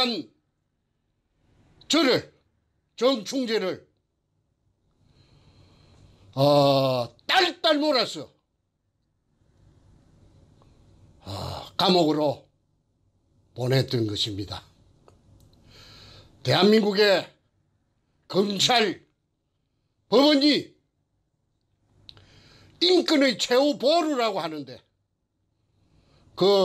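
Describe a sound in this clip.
An elderly man speaks calmly in short phrases, close to a microphone, with pauses between them.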